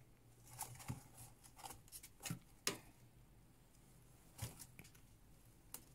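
A rat rustles and scratches in dry bedding.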